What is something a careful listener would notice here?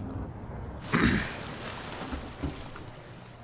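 A hatch opens with a rushing hiss.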